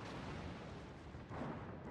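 A shell explodes against a ship.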